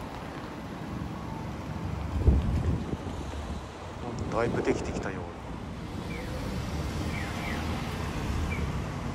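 Street traffic rumbles steadily nearby, outdoors in the open air.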